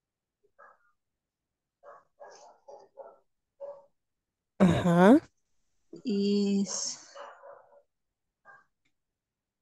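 A young woman speaks softly over an online call.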